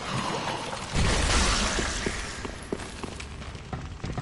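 Fire bursts with a roaring whoosh.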